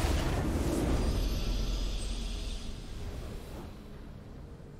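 A triumphant game fanfare blares and then fades away.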